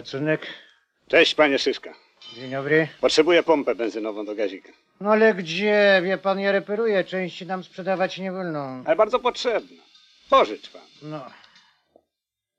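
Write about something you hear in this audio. A man talks calmly and cheerfully up close.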